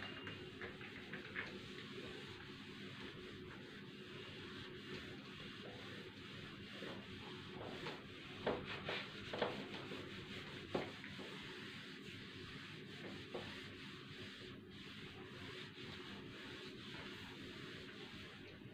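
A marker squeaks and rubs on a whiteboard.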